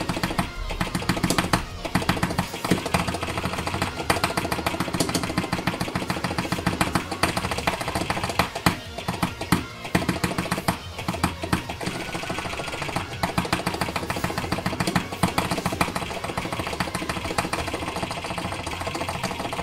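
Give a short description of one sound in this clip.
Rapid game clicks tick along in time with the music.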